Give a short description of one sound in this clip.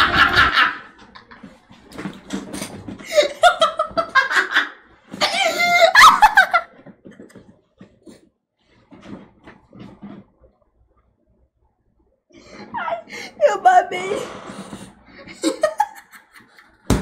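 A man laughs hard through a video call.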